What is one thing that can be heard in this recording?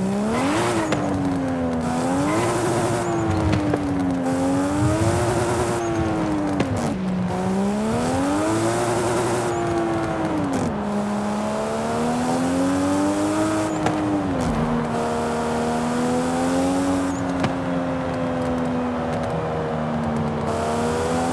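A sports car engine roars, its pitch rising as it speeds up and dropping sharply at each gear change.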